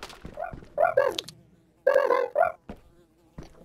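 A high, cartoonish voice asks a question playfully.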